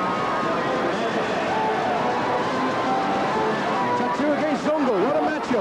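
A large crowd cheers and roars throughout in a big echoing arena.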